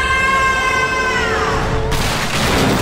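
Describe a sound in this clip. A young woman screams loudly.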